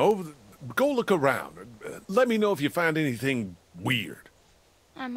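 A man speaks calmly and quietly, up close.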